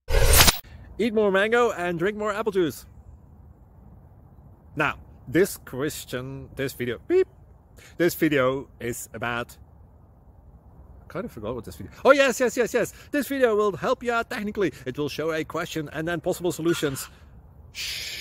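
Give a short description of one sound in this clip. A young man talks casually, close to the microphone, outdoors.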